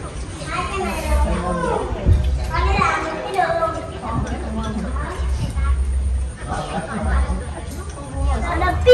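Children and young people chatter and talk lively nearby.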